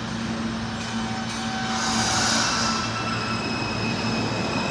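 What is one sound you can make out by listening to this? A subway train starts to pull away, its motors whining louder.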